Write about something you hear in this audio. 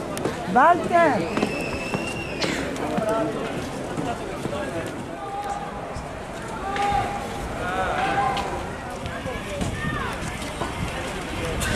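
A crowd of men and women chatter nearby outdoors.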